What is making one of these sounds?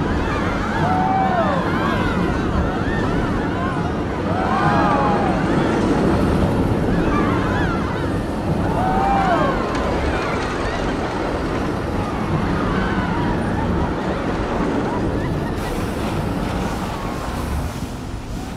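A roller coaster rumbles and rattles along its track.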